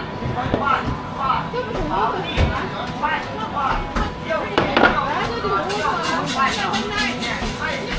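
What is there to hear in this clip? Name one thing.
Dough thumps and slaps on a wooden counter.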